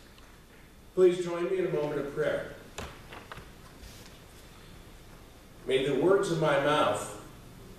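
An elderly man speaks calmly in an echoing hall.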